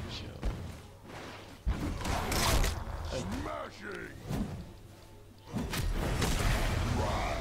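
Video game spells whoosh and crackle in bursts.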